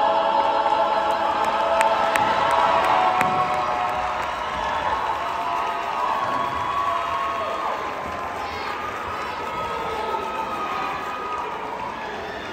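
A choir of young voices sings together in a large echoing hall.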